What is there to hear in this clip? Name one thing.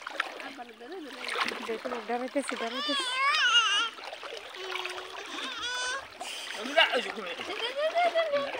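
Small legs splash through shallow water.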